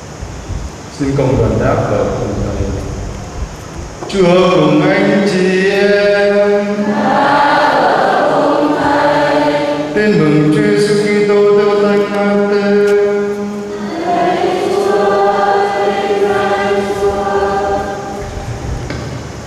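A man chants in a steady, sung voice through a microphone in an echoing hall.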